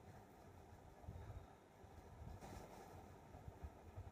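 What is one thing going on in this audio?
Gloves rustle softly as they are pulled onto hands.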